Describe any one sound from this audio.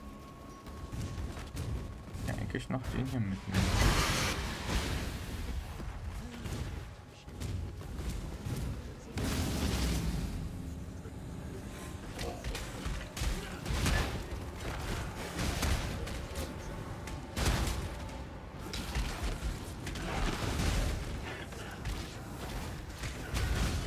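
Spells and explosions crackle and boom in a game, fast and dense.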